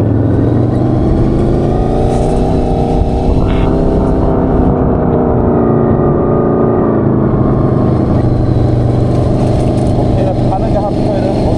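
A small buggy engine buzzes loudly and steadily up close.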